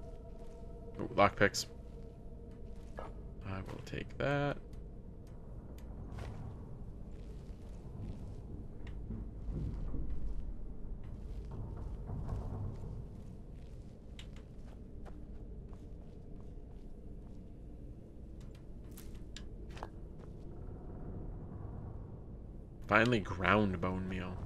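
A man speaks into a close microphone in short bursts.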